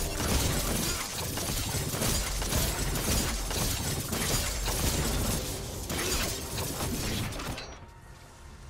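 Fantasy battle effects crackle and clash in quick bursts.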